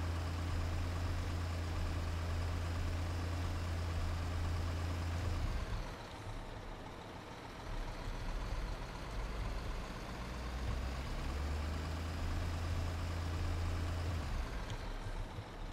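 A simulated truck engine drones.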